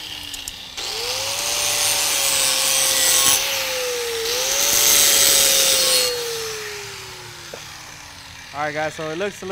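An angle grinder whines loudly as it grinds metal, then spins down.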